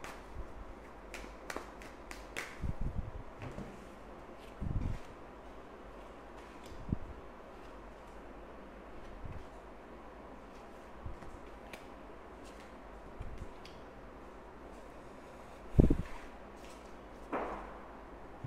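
Playing cards riffle and snap as they are shuffled.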